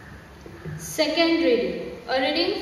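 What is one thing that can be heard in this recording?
A young woman speaks through a microphone over loudspeakers in an echoing room.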